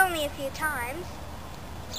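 A young girl speaks briefly close by, outdoors.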